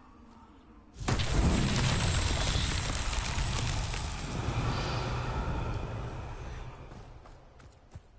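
A magical whoosh swells with a bright shimmering ring.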